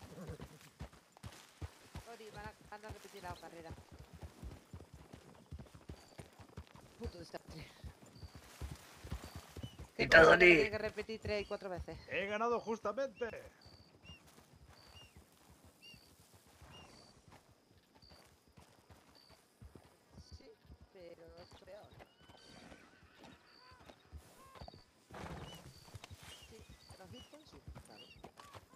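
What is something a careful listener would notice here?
Horses' hooves thud steadily on a dirt trail.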